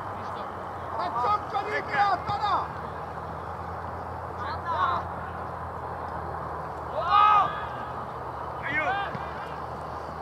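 Young men shout to each other across an open field, some distance away.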